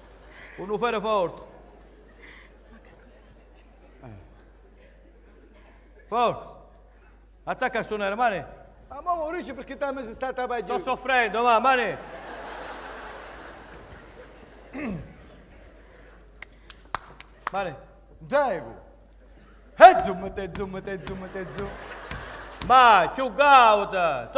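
A man speaks on an echoing stage.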